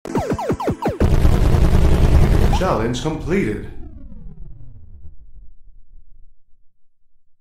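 A loud electronic explosion booms and slowly fades away.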